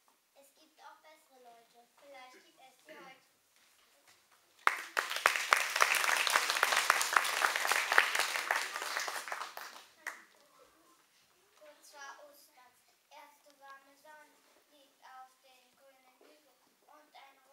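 A young girl speaks calmly from a short distance in an echoing hall.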